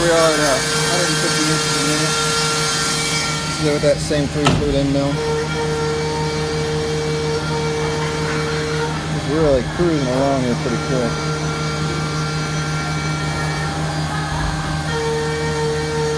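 Coolant sprays and splashes against a machine's glass door.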